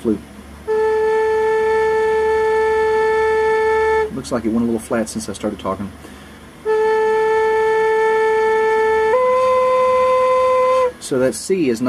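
A steady electronic tone sounds, then shifts slightly higher in pitch.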